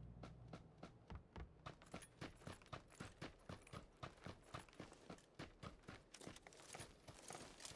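Footsteps crunch on dry, dusty ground at a quick, steady pace.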